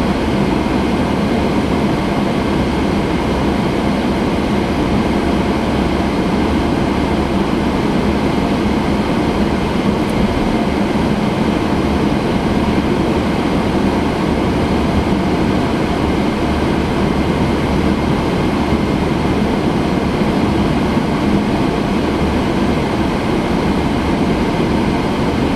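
Tyres roll on smooth asphalt with a steady rumble.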